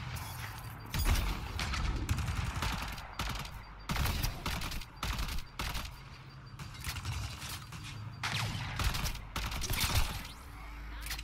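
Guns fire in quick bursts of sharp shots.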